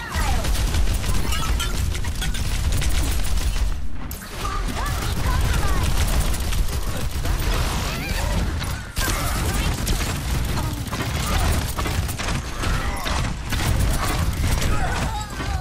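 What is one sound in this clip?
Guns fire in rapid bursts with loud impacts.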